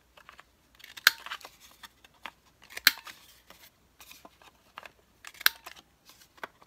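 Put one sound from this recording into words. A paper punch clicks sharply through paper.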